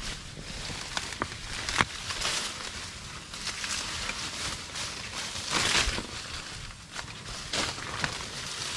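A knife chops into a banana stem with sharp thuds.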